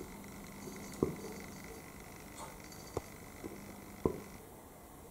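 A cat's paws tap softly on a windowsill.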